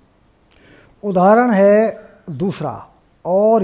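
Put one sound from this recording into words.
A man speaks clearly and calmly, close by.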